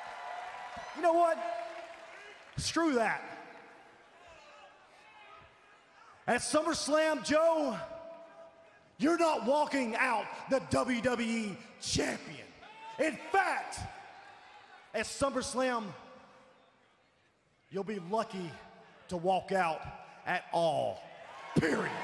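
A man speaks forcefully into a microphone, his voice booming through loudspeakers in a large arena.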